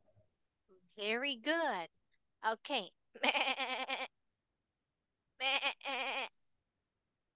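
A young girl answers over an online call.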